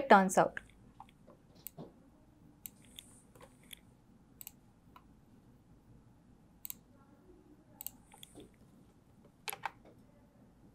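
A computer mouse clicks and keys tap now and then, close by.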